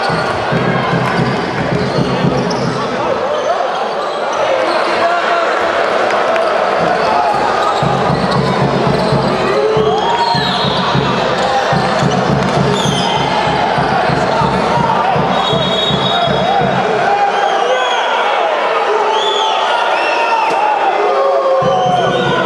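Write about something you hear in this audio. Basketball shoes squeak sharply on the court floor.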